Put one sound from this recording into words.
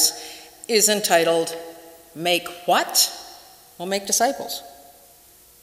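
A middle-aged woman speaks calmly into a microphone in an echoing room.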